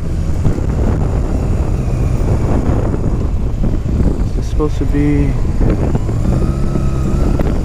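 A motorcycle engine rumbles steadily up close.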